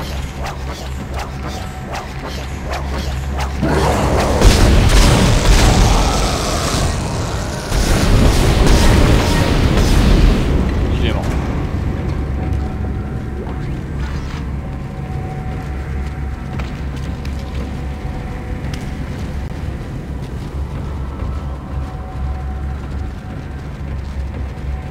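A low machine hum drones steadily.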